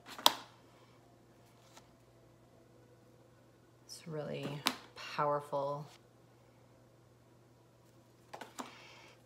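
Cards tap and shuffle in a woman's hands.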